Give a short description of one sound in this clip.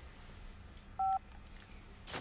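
A mobile phone beeps briefly.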